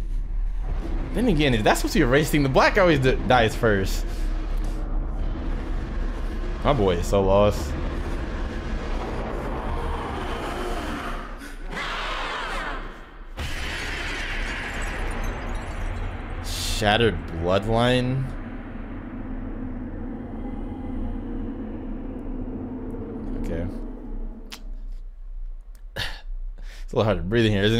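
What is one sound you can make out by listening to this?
A young man talks and laughs with animation into a close microphone.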